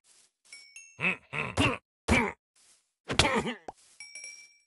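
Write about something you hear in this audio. Sharp blows thud as a sword strikes a creature.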